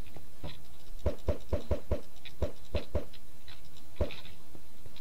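Snowballs are thrown with quick soft whooshes.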